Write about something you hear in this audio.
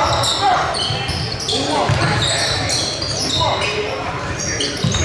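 A basketball thumps as it is dribbled.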